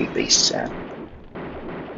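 Pistol shots ring out.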